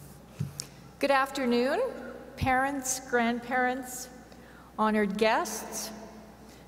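A middle-aged woman speaks calmly through a microphone in a large echoing hall.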